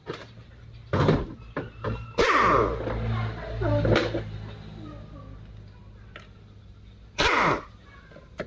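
A pneumatic impact wrench whirs in short, loud bursts.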